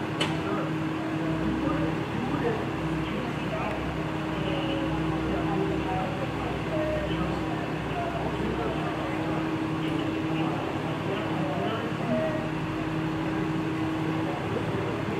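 Men talk nearby in low, tense voices.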